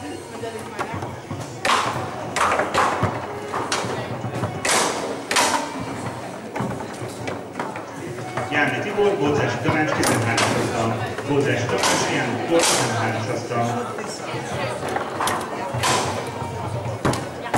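Rods rattle and slide as players spin and shift them.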